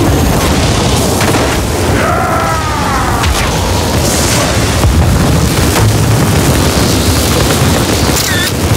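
Electric bolts crackle and zap in loud bursts.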